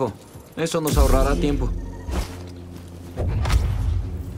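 A lightsaber ignites and hums with a low buzz.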